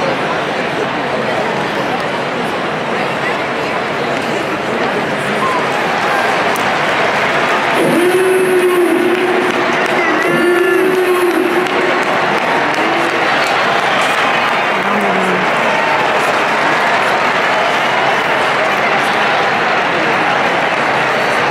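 A large stadium crowd murmurs and chatters steadily, heard from high in an open arena.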